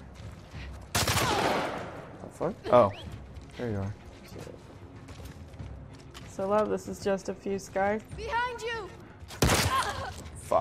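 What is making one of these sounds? Gunshots bang out, with echoing noise after each.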